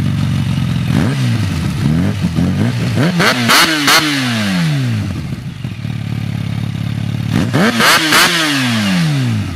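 A motorcycle engine revs sharply several times and drops back to idle.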